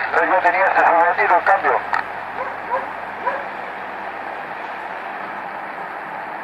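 Static hisses steadily from a radio.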